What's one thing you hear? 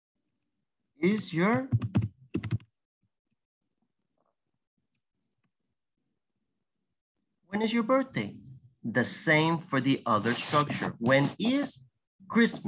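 A young woman speaks with animation over an online call, in short bursts with pauses.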